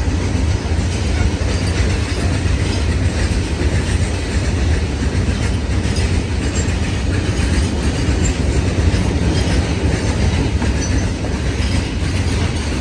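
A long freight train rumbles steadily past, close by.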